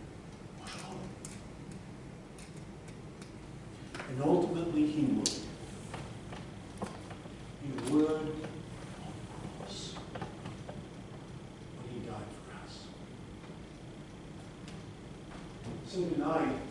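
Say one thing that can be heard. A man speaks slowly and calmly at a distance in an echoing hall.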